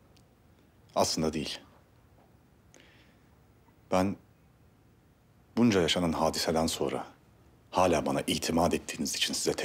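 A man speaks calmly in a low voice, close by.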